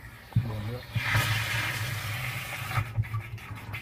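Water splashes into a tank.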